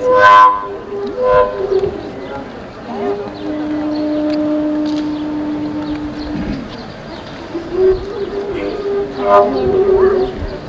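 Sharp overblown notes on a long wooden flute sound in short bursts.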